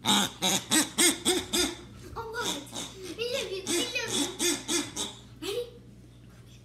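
A small dog barks sharply several times close by.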